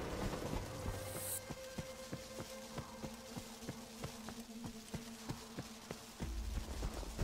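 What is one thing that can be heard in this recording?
Footsteps crunch over snow at a steady pace.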